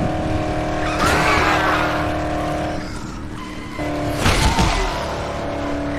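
A car thuds into a body with a heavy impact.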